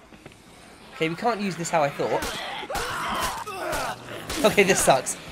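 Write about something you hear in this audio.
Zombies groan and moan close by.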